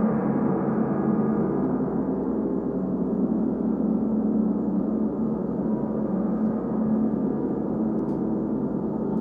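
Large gongs hum and shimmer with a deep, steady, slowly pulsing drone.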